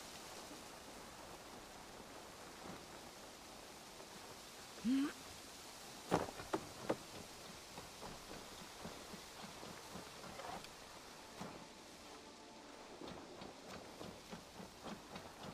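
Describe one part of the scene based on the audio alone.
Footsteps crunch through grass and leaves.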